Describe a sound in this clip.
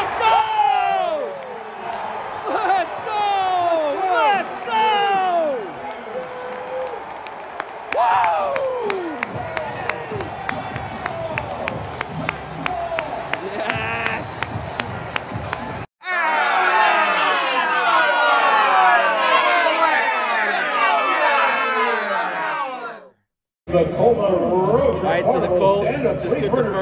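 A large stadium crowd cheers and roars loudly.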